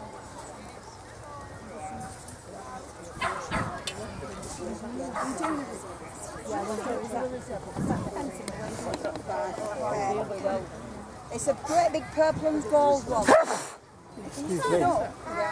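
A small crowd of men and women chat nearby outdoors.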